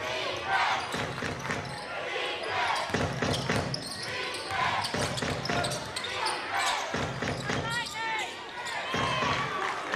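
A basketball thumps on the floor.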